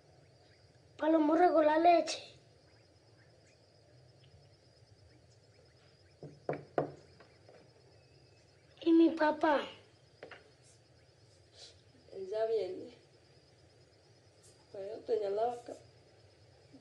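A boy speaks quietly and hesitantly nearby.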